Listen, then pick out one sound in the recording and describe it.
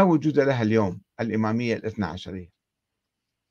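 An elderly man speaks calmly into a close microphone, heard over an online call.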